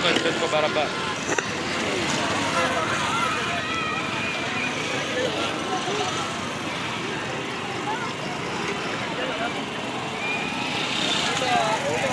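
A motorcycle engine idles and revs close by.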